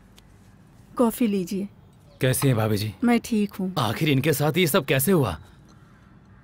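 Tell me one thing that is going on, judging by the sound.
A middle-aged woman speaks firmly nearby.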